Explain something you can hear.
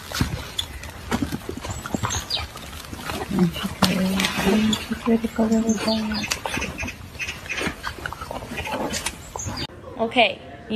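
Several puppies growl and yip while tussling close by.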